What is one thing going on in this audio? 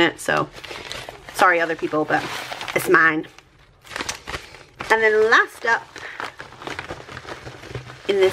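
Paper and plastic rustle as they are handled up close.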